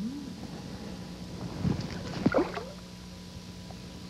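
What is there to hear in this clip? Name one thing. Something splashes into calm water.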